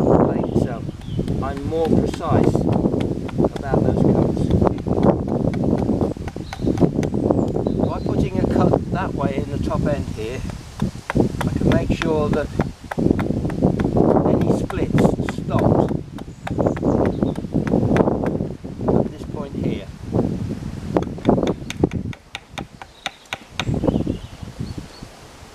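An elderly man talks calmly, close by, outdoors.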